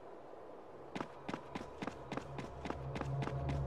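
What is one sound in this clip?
Footsteps tread steadily on a hard surface.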